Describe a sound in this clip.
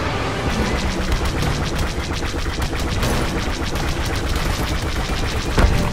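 Laser cannons fire in a rapid, even stream of zaps.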